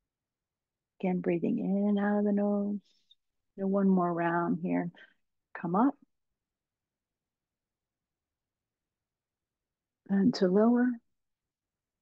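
A woman speaks calmly and slowly over an online call, with pauses between phrases.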